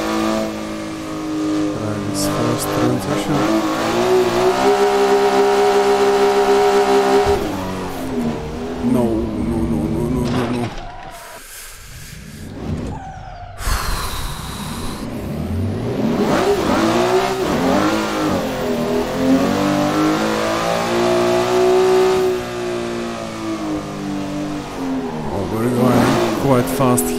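A racing car engine roars, revving up and down through gear changes.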